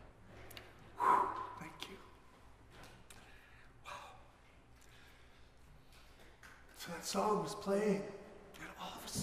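A middle-aged man talks cheerfully into a microphone.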